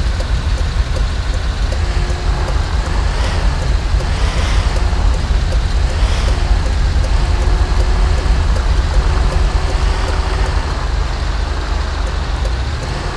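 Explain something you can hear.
A heavy truck engine rumbles steadily as it drives.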